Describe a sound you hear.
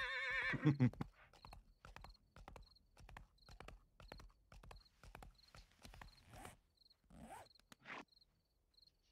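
A horse's hooves clop steadily on a dirt trail.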